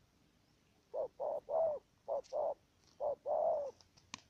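A dove coos in short repeated bursts.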